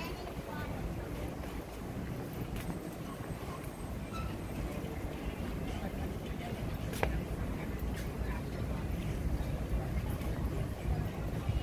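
People chat at outdoor tables, heard as a low murmur.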